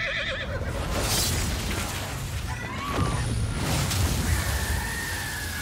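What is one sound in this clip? A fiery explosion roars and rumbles.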